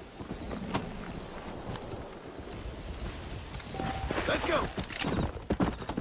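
A horse's hooves clop on a dirt trail.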